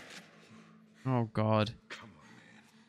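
A man groans in pain close by.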